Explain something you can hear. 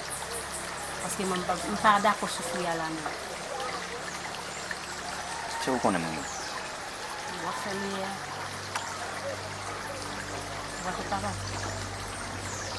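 A man speaks quietly nearby, outdoors.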